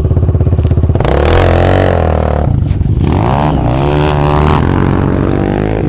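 A dirt bike roars past nearby.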